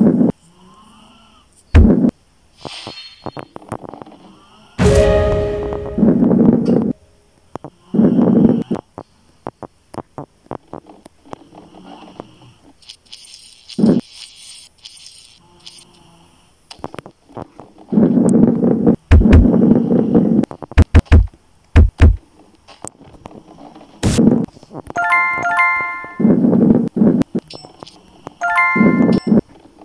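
A ball rolls and rumbles along a track.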